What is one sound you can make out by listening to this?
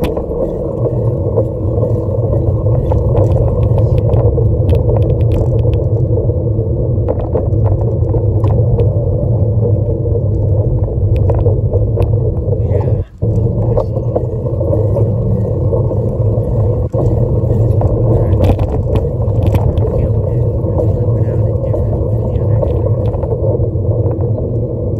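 Skateboard wheels rumble steadily over rough asphalt.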